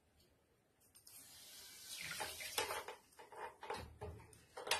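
Water pours and splashes into a pan of rice.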